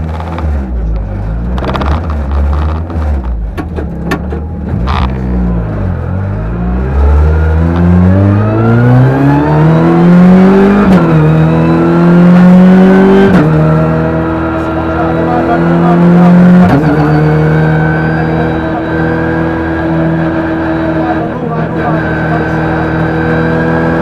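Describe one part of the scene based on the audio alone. A car engine revs hard, climbing and dropping in pitch as the gears change.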